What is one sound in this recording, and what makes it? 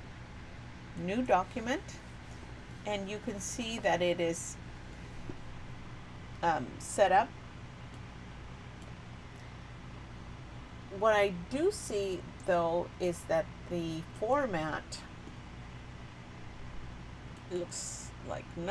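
A middle-aged woman speaks calmly into a close microphone, in short phrases with pauses.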